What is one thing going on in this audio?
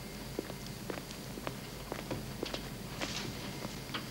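High heels click on a hard floor.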